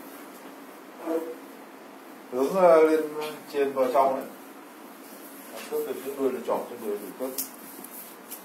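A man speaks close by in short bursts, explaining.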